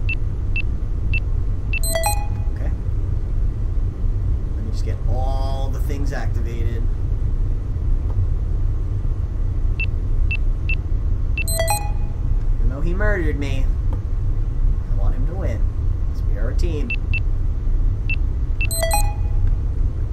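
Electronic keypad buttons beep in quick succession.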